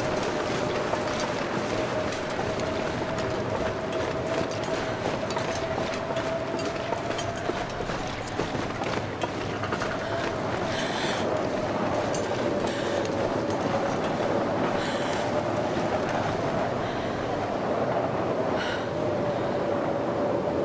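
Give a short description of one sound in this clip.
A strong wind howls steadily through a snowstorm.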